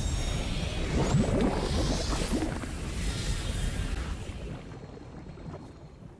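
A game character wades through shallow water with splashing.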